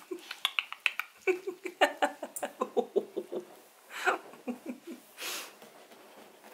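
Small puppies squeal and whimper in quick, high cries up close.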